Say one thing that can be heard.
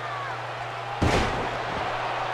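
A body thuds onto a wrestling mat.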